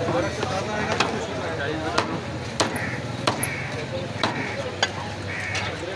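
A cleaver chops sharply into a wooden block.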